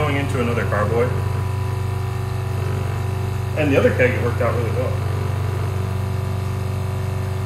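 An electric filter pump hums.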